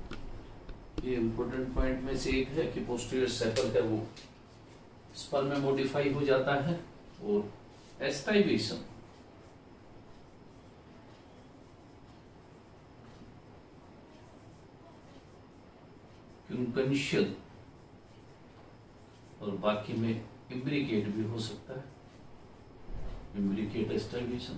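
A middle-aged man lectures calmly, close by, in short bursts with pauses.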